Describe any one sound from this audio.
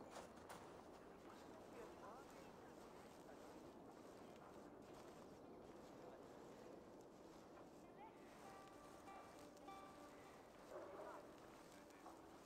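Straw thatch rustles softly under creeping footsteps.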